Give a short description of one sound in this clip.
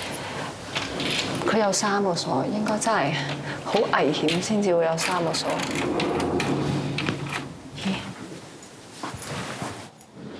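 Keys jingle and click in a door lock.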